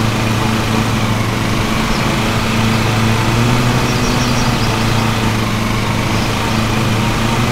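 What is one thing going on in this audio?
A riding lawn mower engine drones steadily.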